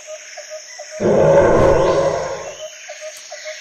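A dinosaur lets out a loud, deep roar.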